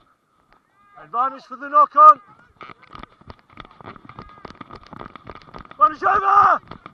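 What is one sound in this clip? Young men shout loudly to each other outdoors.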